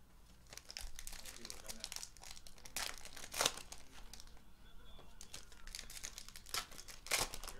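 Foil card packs crinkle and rustle in someone's hands.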